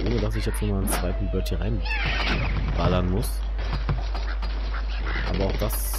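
Wooden blocks crash and clatter as a structure collapses.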